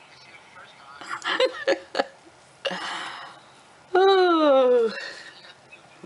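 A woman laughs close by.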